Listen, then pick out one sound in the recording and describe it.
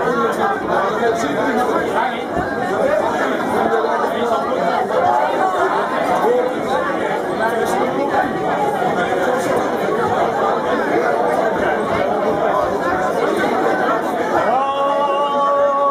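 A marching band plays drums loudly.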